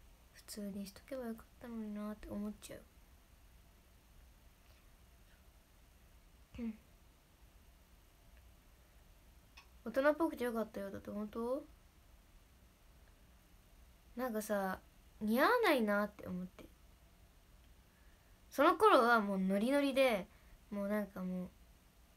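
A young woman speaks softly and close to a microphone, in short bursts with pauses.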